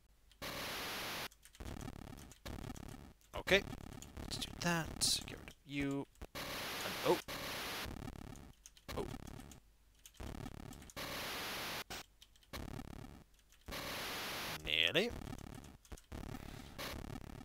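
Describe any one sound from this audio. Chiptune game sounds beep and chirp in short bursts.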